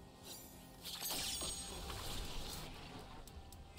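A magical burst whooshes and crackles.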